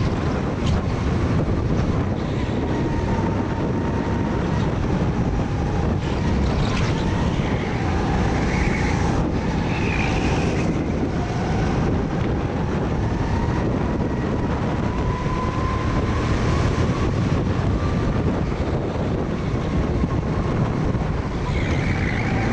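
A kart engine buzzes loudly and steadily up close, rising and falling in pitch.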